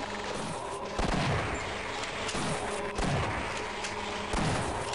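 A shotgun fires several loud blasts.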